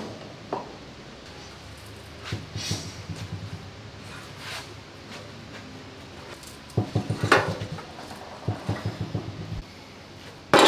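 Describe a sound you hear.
Metal scrapes and rattles against a bench.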